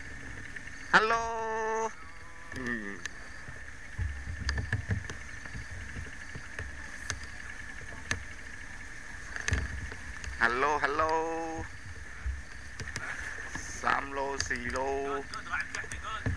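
A man calls out in a sing-song voice.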